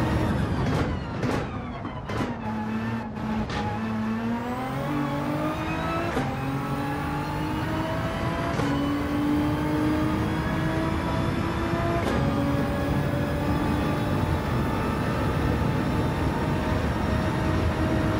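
A racing car engine roars, dropping in pitch as it slows and then climbing steadily through the gears.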